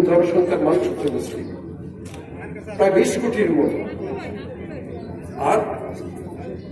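A middle-aged man speaks loudly into a microphone through a loudspeaker, outdoors.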